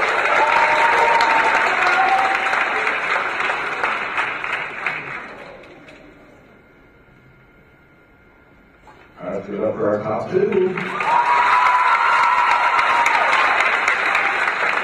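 Many people applaud loudly.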